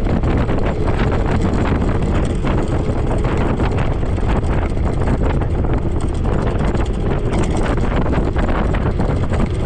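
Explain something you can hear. Cars drive past on the road.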